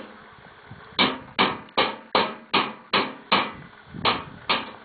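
A hand knocks repeatedly on a hollow metal tank.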